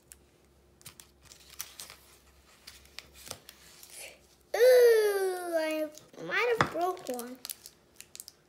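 A plastic wrapper crinkles and rustles in small hands.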